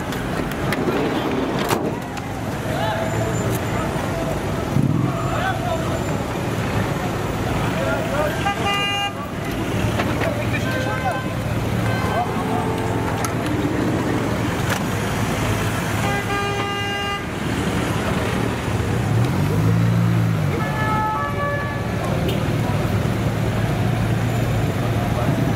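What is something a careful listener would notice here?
A large van's engine idles and rumbles nearby.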